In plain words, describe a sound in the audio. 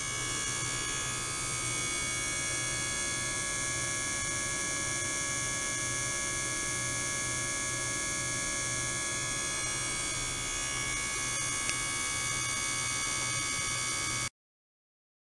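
A steady electronic hum with several high, unchanging tones drones on.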